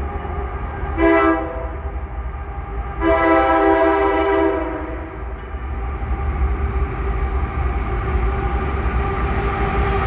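A diesel locomotive rumbles as it approaches, growing louder.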